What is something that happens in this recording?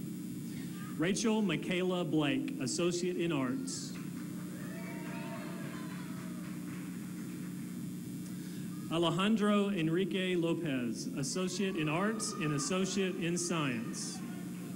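A man speaks calmly through a loudspeaker in a large echoing hall.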